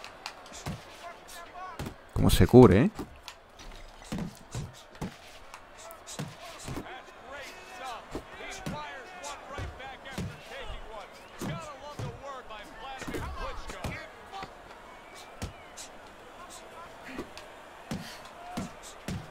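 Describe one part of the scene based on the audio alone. Punches thud in a video game boxing match.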